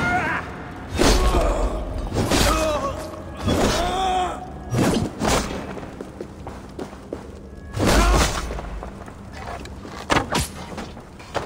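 Blades clash and strike in sharp, heavy blows.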